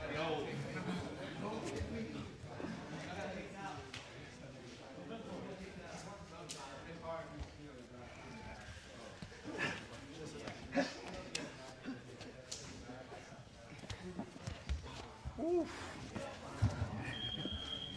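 Bodies thump against a padded wall.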